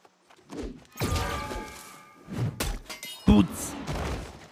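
Heavy blows strike a stag with thuds.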